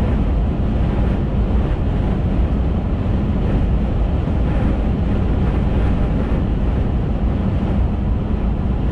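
Tyres roar steadily on a paved highway.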